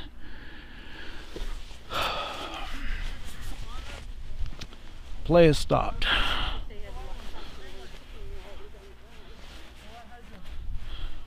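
Young men shout to each other across an open field at a distance.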